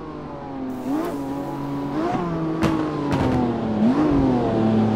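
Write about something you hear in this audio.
Exhaust pops and crackles between gear changes.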